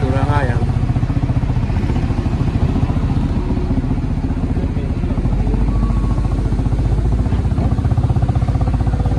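A truck engine rumbles as the truck passes close by.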